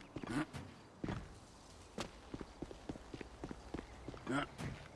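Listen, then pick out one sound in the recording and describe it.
Quick footsteps run on a paved path.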